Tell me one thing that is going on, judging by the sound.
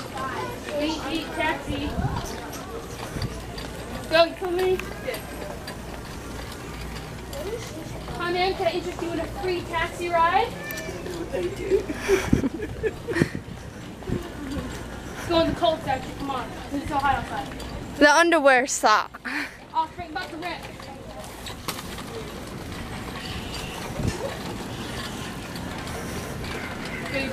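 A small bicycle rolls and rattles across a smooth hard floor.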